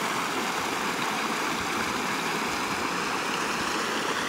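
A shallow stream trickles and splashes over rocks and branches.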